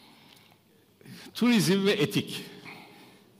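An elderly man speaks with animation through a headset microphone.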